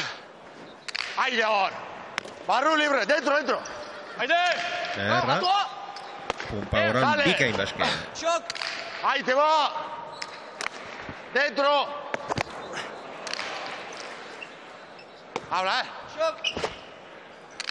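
A hard ball smacks sharply against a wall and floor, echoing in a large hall.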